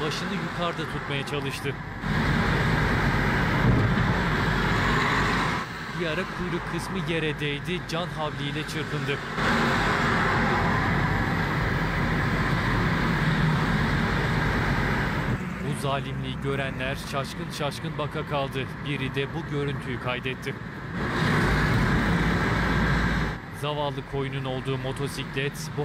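A motor scooter engine hums as it rides along in street traffic.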